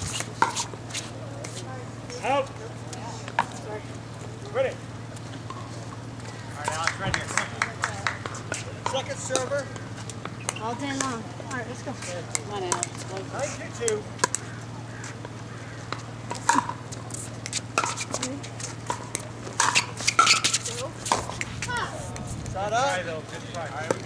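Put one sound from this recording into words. Paddles strike a plastic ball with sharp pops.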